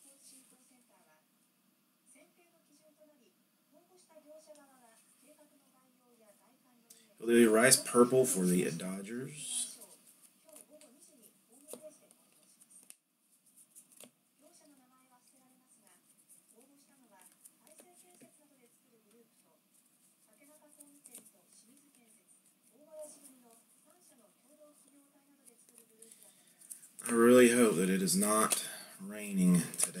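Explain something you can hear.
Trading cards rustle and slide softly as they are flipped through by hand.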